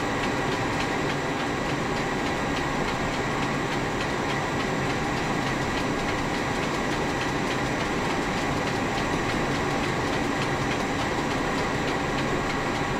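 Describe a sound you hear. An airliner's engine hums steadily at idle nearby.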